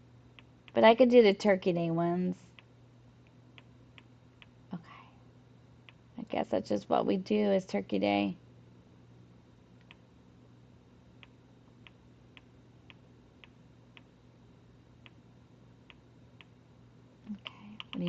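Soft menu clicks tick now and then as a cursor scrolls through a list.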